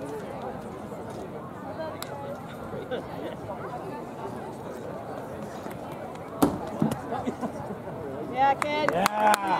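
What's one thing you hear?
A crowd of young people chatters in the distance outdoors.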